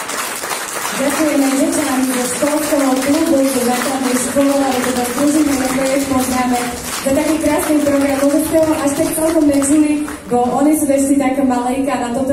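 A group of children sings together over loudspeakers in a large hall.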